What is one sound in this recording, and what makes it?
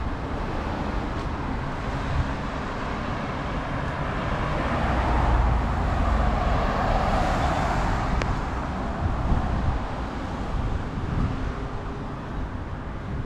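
Traffic hums steadily along a street outdoors.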